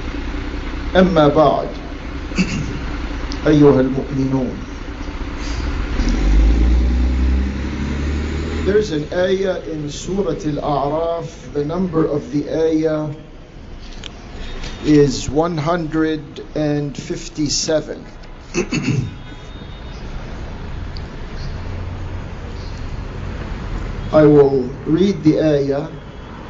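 A man speaks calmly into a microphone.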